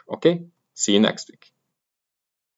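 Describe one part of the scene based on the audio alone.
A man speaks briefly and calmly into a close microphone.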